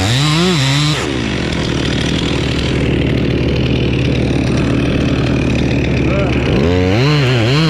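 A chainsaw bites through thick wood with a rough, grinding roar.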